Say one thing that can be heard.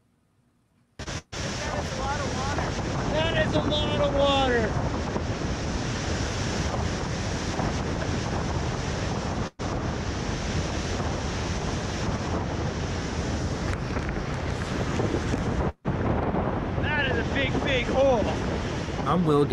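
Wind blows hard over a microphone outdoors.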